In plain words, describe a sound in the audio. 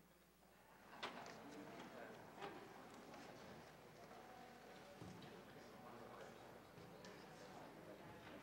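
Men talk quietly in low voices in the background.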